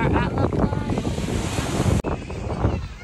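Waves break on the shore.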